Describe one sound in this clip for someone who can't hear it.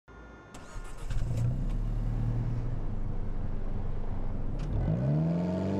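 A sports car engine idles with a low rumble.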